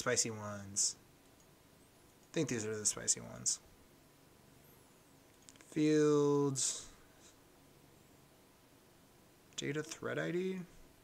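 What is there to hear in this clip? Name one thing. A young man speaks calmly into a close microphone, in short phrases.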